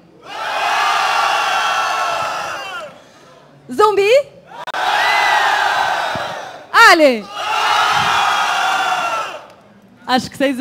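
A large crowd cheers and roars in an echoing hall, in three long waves.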